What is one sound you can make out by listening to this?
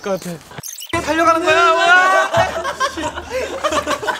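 Young men laugh and shout with excitement.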